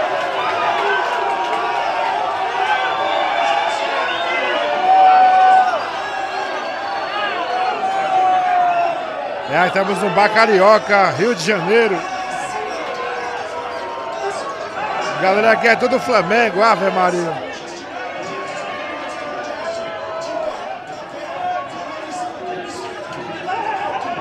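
A crowd of men talks and shouts loudly.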